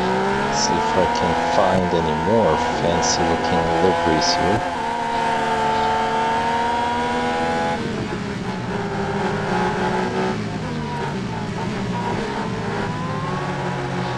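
Other racing car engines roar past nearby.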